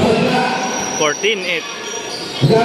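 Basketball shoes squeak sharply on the court.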